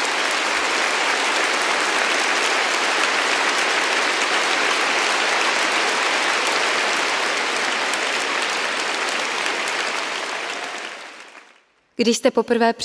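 A large crowd applauds in a big echoing hall.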